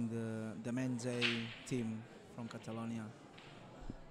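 Pool balls clatter and knock together as the rack breaks apart.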